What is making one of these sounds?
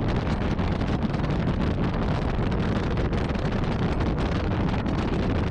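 Wind roars loudly past, close up, while riding along a road.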